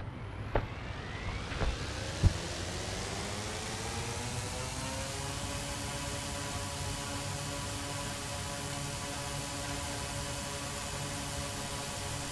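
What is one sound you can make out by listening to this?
A drone's propellers whir, rising in pitch and then holding a steady hum.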